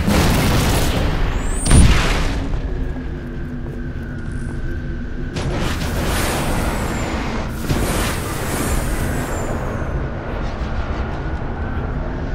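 A heavy aircraft engine drones and rumbles steadily.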